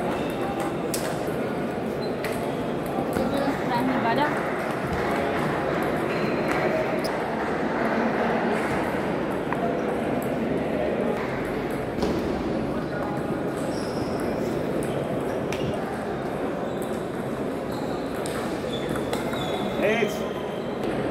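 A table tennis ball clicks back and forth on paddles and the table.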